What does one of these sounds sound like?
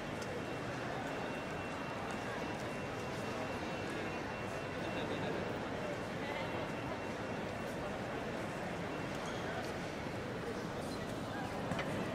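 A distant crowd murmurs in a large, echoing hall.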